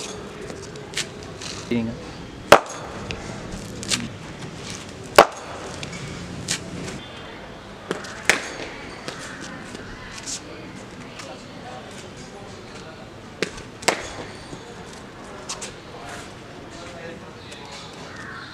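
A ball thuds on hard ground.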